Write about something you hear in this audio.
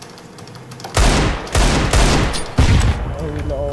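A heavy pistol fires several loud shots.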